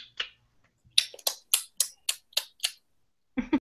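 A young woman claps her hands quickly through an online call.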